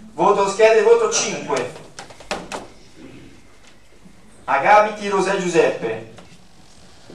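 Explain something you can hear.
A man speaks into a microphone in a room with a slight echo.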